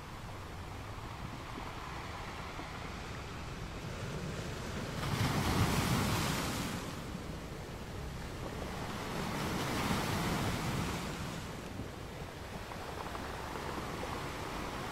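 Ocean waves roll in and crash on rocks, swelling and fading in slow surges.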